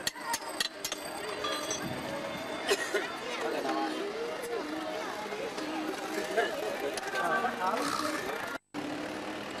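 A crowd of people chatters on a busy street outdoors.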